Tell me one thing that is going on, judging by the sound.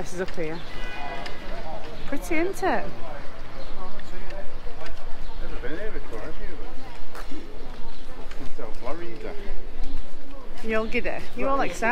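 Other people talk casually nearby outdoors.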